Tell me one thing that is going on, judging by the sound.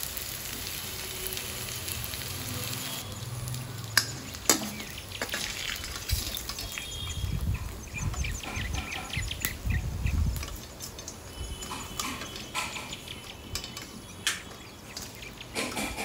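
Hot oil sizzles and crackles in a pan.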